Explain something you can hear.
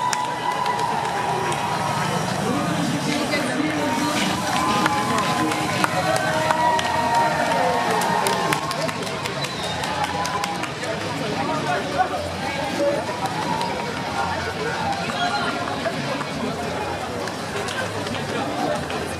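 A large crowd cheers, whistles and calls out along a street outdoors.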